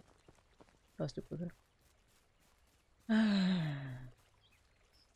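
A young woman speaks briefly into a close microphone, her voice dropping in a drawn-out exclamation.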